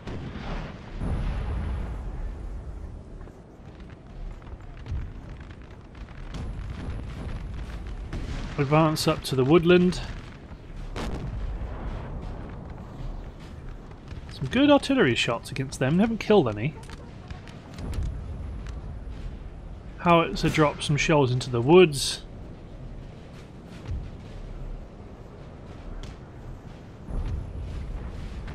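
Muskets fire in scattered, crackling volleys at a distance.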